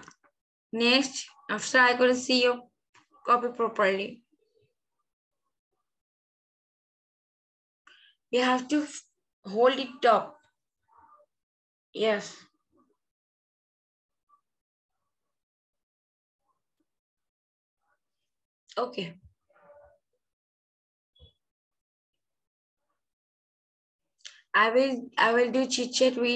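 A young girl reads aloud in short bursts, heard over an online call.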